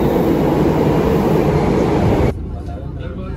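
A metro train rumbles loudly into a station.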